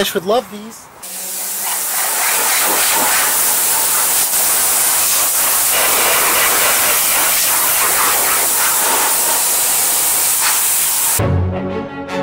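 A pressure washer sprays water hard with a loud steady hiss.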